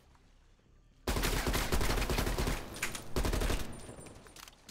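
A rifle fires rapid bursts of shots.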